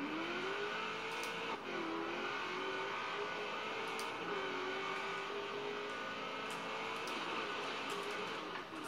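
A racing car engine hums and revs through a television speaker.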